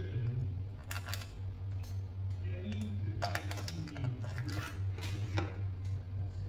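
A metal spoon clinks and scrapes against foil in a pot.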